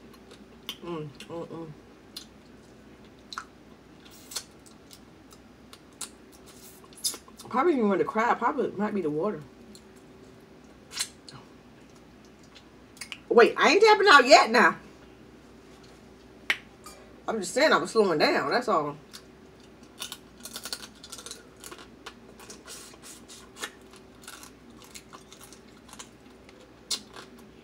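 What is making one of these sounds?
A young woman smacks her lips and sucks while eating.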